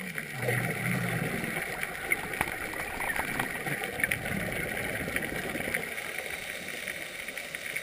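Air bubbles gurgle and burble underwater from a diver's breathing.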